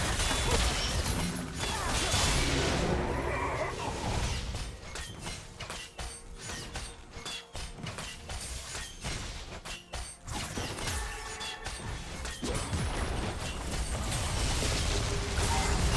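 Magic blasts and impacts crackle in a video game battle.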